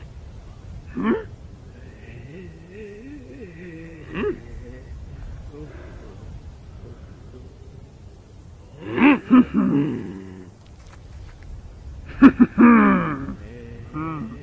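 A man exclaims in a startled voice, close by.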